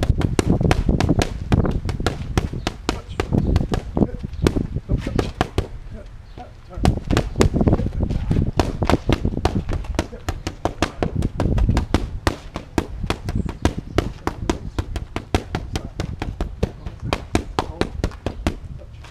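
Boxing gloves smack rapidly against padded mitts.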